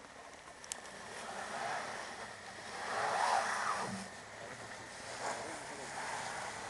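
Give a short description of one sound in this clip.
Tyres crunch and spin on packed snow.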